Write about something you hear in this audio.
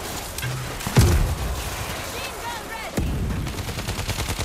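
Explosions boom heavily nearby.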